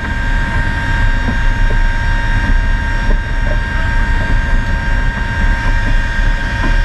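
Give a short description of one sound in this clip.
Aircraft engines drone loudly and steadily with a high whine.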